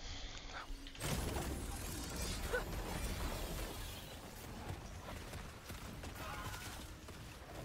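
Game combat effects crackle and burst loudly.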